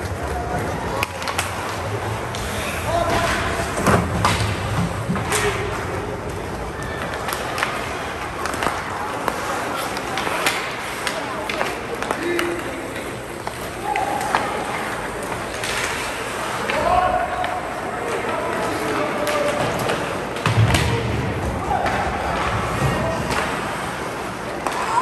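Ice skates scrape and hiss on the ice.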